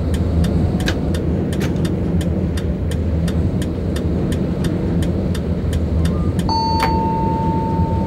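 Tram wheels click rhythmically over rail joints.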